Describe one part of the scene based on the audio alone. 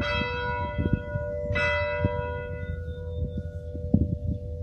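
An electric keyboard plays ringing chords that slowly fade.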